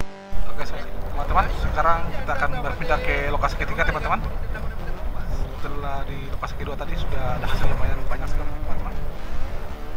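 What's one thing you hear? A man talks loudly close by, over the wind.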